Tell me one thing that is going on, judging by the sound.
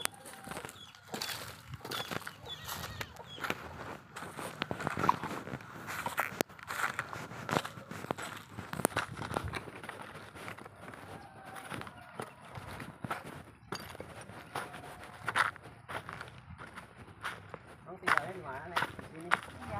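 Footsteps crunch and rustle over loose rubbish.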